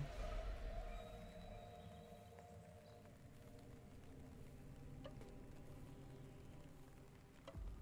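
Footsteps thud and crunch on a forest floor as a person runs.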